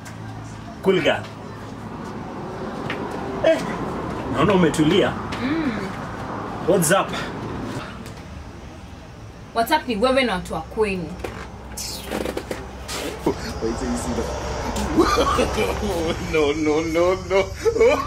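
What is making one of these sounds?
A young man speaks animatedly nearby.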